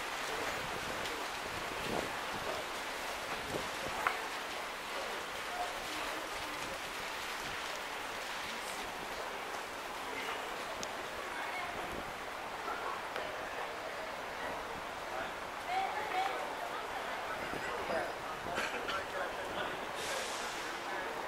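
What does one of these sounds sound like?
A steady murmur of distant city noise fills the air.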